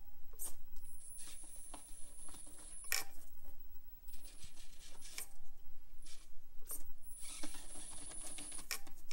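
Plastic wheels scrape and knock against rough rock.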